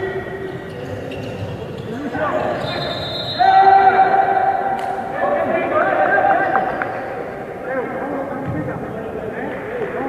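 Spectators murmur and call out in the background.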